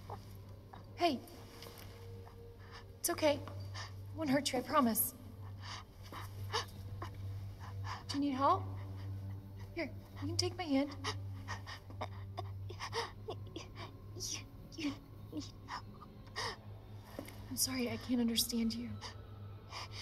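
A young woman speaks softly and reassuringly.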